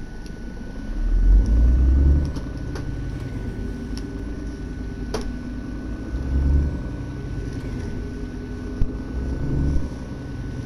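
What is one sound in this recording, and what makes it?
A truck engine revs up and pulls away.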